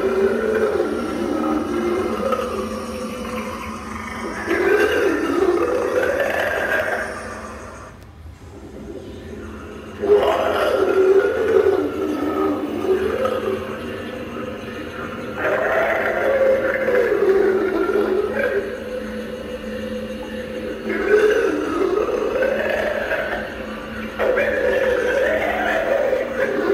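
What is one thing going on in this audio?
A small motor hums steadily as a prop sways.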